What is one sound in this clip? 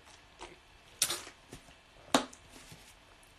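A plastic bottle crinkles and squeaks in a hand.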